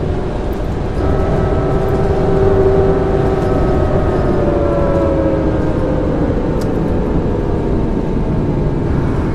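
An electric motor whines and falls in pitch as a bus slows.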